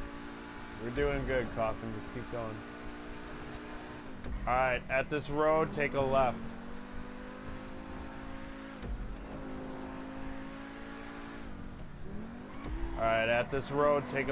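Tyres squeal as a sports car takes the bends.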